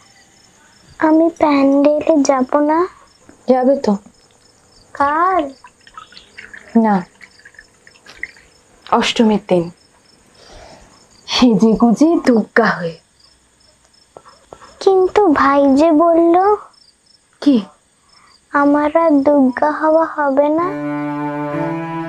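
A young girl speaks softly and pleadingly, close by.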